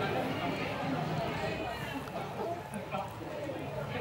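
A crowd of people murmurs indoors.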